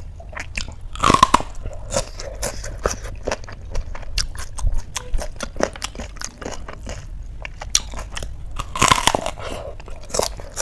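Crunchy food crackles as a woman bites into it.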